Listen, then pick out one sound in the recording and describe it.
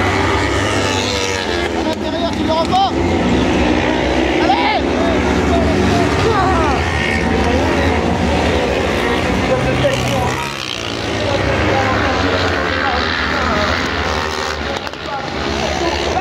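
Racing car engines roar and rev at a distance.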